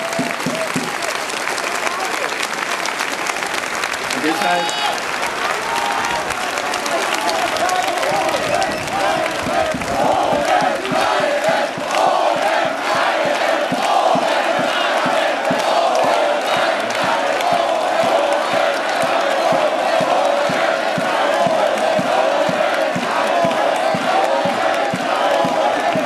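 A large crowd claps and cheers outdoors.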